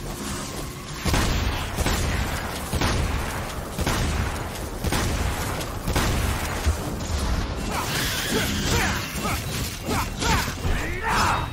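Blades slash and clang in quick strikes.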